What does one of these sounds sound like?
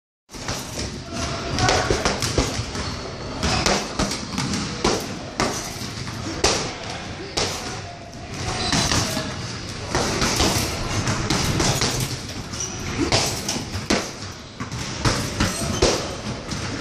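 Gloved fists thump against a heavy punching bag in a large echoing hall.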